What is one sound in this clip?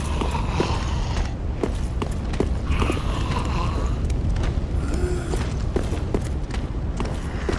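Armoured footsteps clank on stone.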